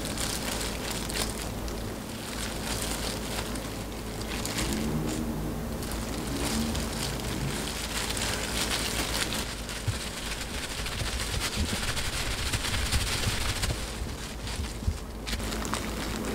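Plastic gloves rustle and crinkle as hands work.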